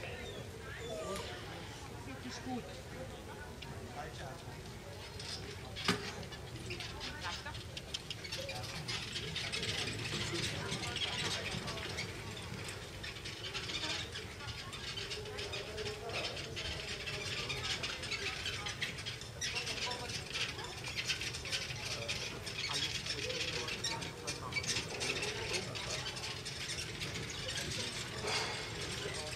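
Carriage wheels roll and rattle over grass.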